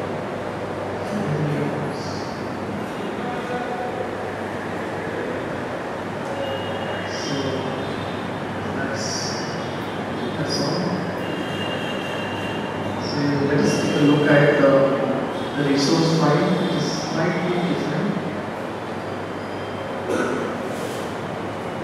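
A man speaks calmly into a microphone, heard through loudspeakers in a large room.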